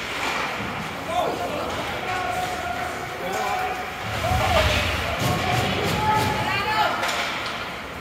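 Spectators cheer and shout in a large echoing rink.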